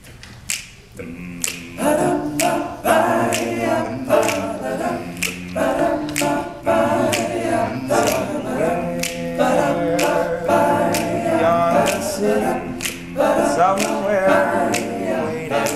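A group of young men sings together in close harmony in an echoing hall.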